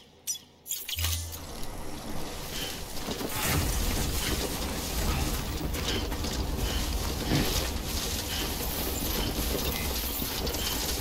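Footsteps rustle through tall grass outdoors.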